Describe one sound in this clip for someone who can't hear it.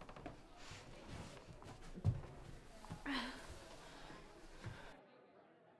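A woman's footsteps thud across a wooden floor.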